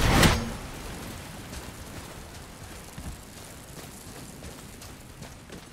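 Footsteps crunch over a hard floor at a walking pace.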